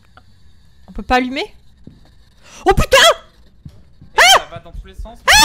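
A young woman shrieks and yelps loudly into a microphone.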